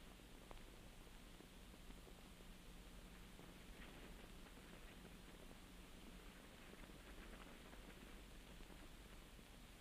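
Footsteps walk slowly across a floor.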